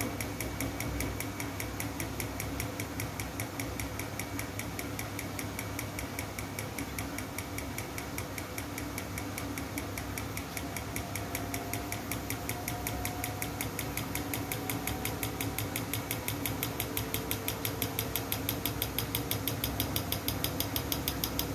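A washing machine drum turns with a steady hum.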